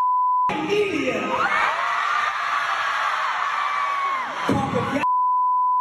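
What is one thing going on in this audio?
A young man speaks into a microphone over loudspeakers in a large hall.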